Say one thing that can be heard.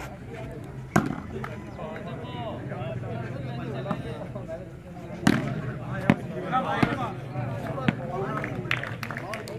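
A ball thuds as players hit it.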